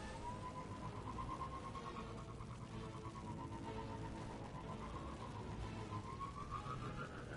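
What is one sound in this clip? A hover bike's engine whines steadily at speed, rising in pitch near the end.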